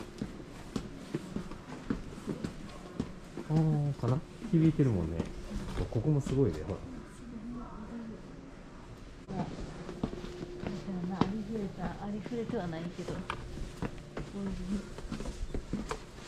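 Footsteps walk steadily on pavement.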